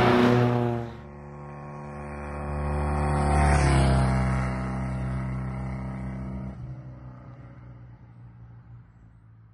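A motorcycle engine hums as it approaches and passes, then fades.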